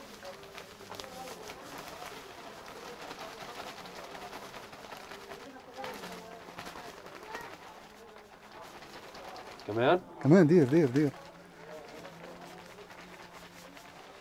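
A plastic bag rustles as spices are scooped into it.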